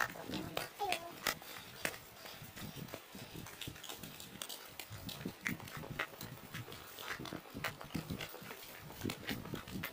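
Footsteps crunch and rustle on a grassy path.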